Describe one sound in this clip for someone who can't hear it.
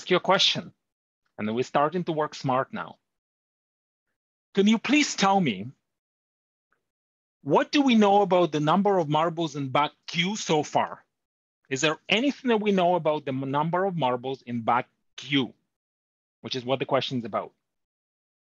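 A man speaks calmly into a close microphone, explaining in short phrases.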